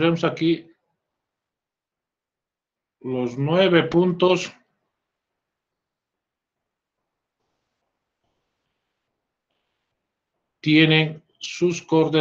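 A man speaks calmly through an online call, in short bursts with long pauses.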